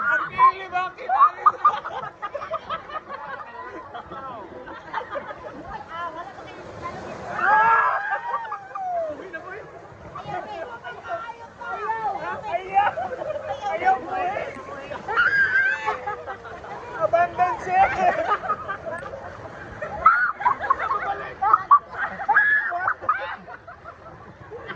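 A group of people laugh and shout with excitement close by.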